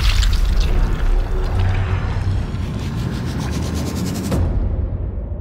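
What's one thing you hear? A bullet tears through a head with a heavy, wet, rumbling impact.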